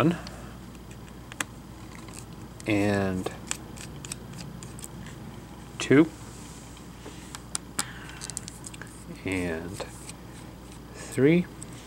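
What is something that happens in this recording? Plastic parts click softly as they are pried apart.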